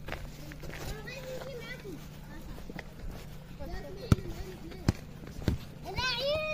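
A ball thumps as it is kicked and bounces.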